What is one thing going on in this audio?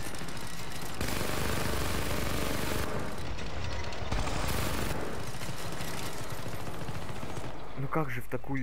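A weapon fires a loud, roaring energy beam.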